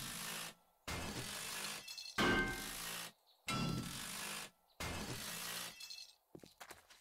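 A power drill whirs in loud bursts against metal.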